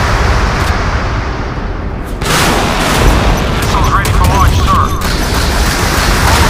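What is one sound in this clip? Large naval guns fire with deep, rumbling booms.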